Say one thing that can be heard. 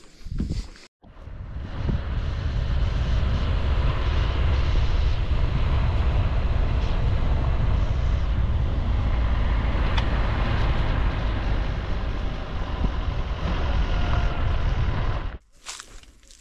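Tyres crunch and rumble over a gravel road.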